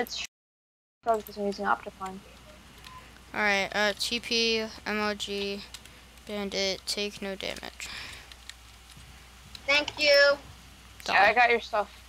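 A boy talks with animation into a nearby microphone.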